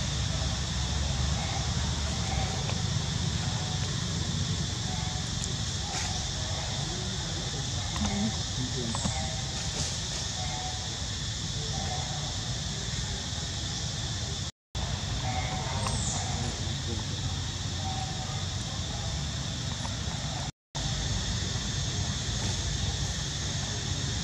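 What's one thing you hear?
Young monkeys squeak softly close by.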